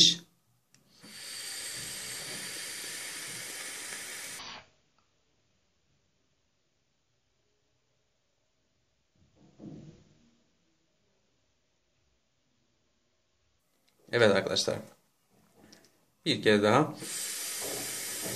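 An electronic cigarette hisses and crackles as a man draws on it.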